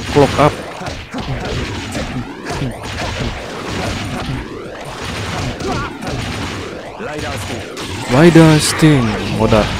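Blows and kicks thud and smack in a fast brawl.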